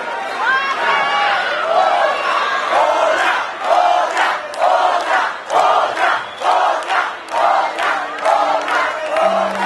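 A crowd claps along in a steady rhythm.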